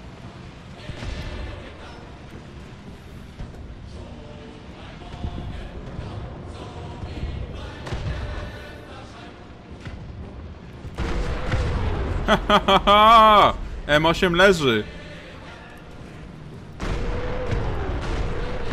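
Tank cannons fire with loud booms.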